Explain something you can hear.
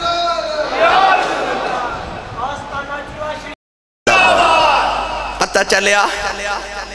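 A man chants with fervour into a microphone, heard through loudspeakers in an echoing space.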